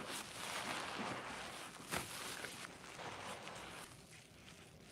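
A soapy sponge is squeezed, with foam squishing and crackling wetly.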